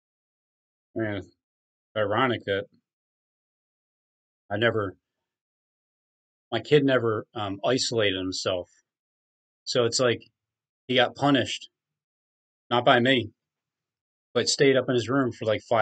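A man speaks calmly through a microphone in short bursts with pauses.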